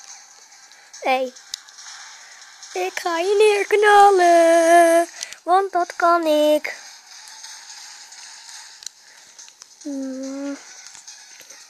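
Electronic game sounds play from a small speaker.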